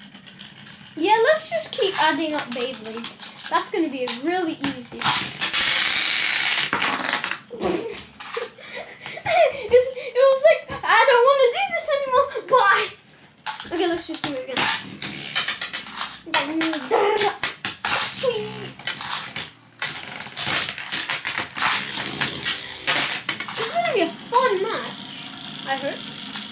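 A child talks with animation close by.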